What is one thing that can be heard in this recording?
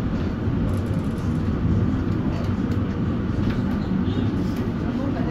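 A tram rumbles and rattles steadily along its tracks, heard from inside.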